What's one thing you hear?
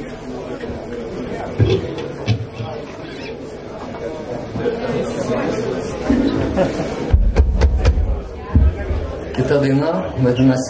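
A rock band plays loudly on electric guitars.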